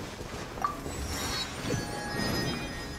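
A bright magical chime rings out.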